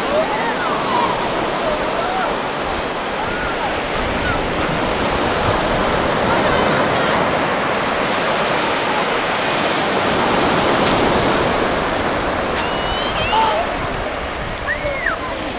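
Waves break and wash onto a beach in a steady roar.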